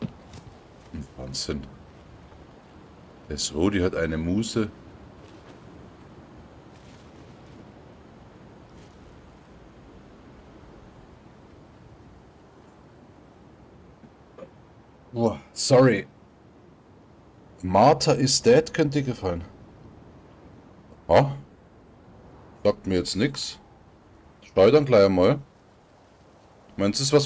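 A man speaks casually into a nearby microphone, in short bursts with pauses.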